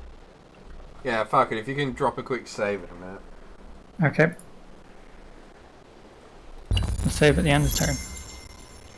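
A man talks calmly into a close microphone, in short bursts.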